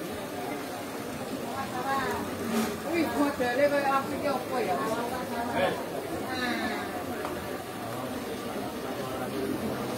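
A man talks with another man nearby.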